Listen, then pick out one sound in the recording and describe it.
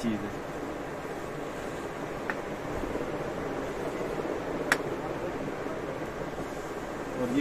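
Fabric rustles as it is arranged and smoothed by hand.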